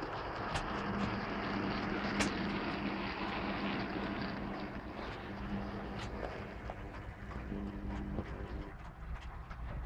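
A model locomotive hums and rumbles in slowly, then stops.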